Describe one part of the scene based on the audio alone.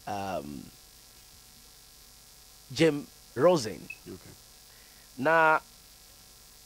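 A man speaks into a microphone in short, animated bursts with long pauses.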